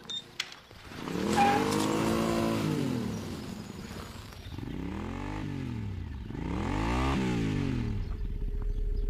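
A motorcycle engine roars as it passes by.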